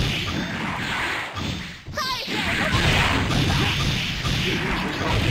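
Video game music plays loudly with booming beats.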